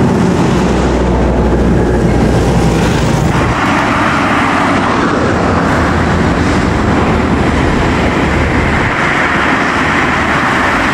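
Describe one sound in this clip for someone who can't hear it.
A bus engine roars as the bus drives past on a road.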